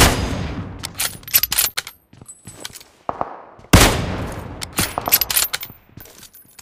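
Metal clicks and clacks as a rifle bolt is worked.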